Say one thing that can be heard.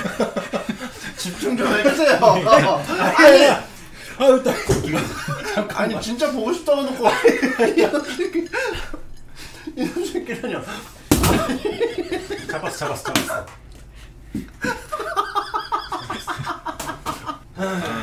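Several men laugh loudly together close by.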